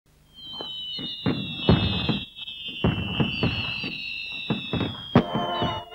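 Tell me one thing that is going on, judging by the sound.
Fireworks burst with sharp cracks and booms.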